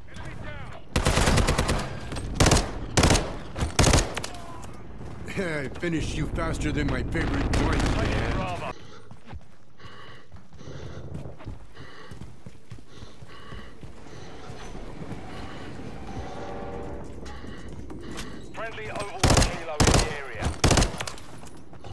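Gunshots ring out in loud, quick bursts.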